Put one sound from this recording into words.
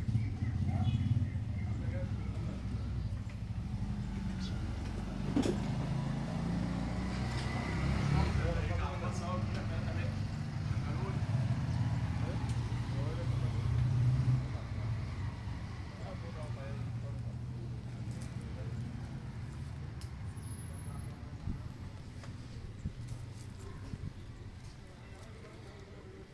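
A tractor engine idles nearby with a low, steady rumble.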